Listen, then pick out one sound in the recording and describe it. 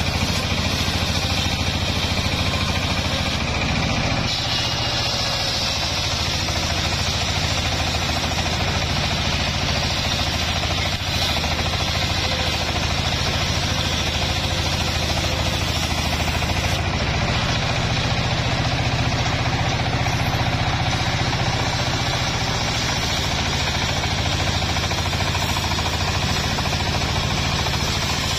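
A circular saw whines as it cuts through a log.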